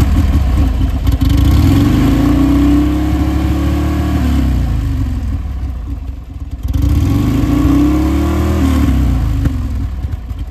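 A motorcycle engine revs up and falls back twice.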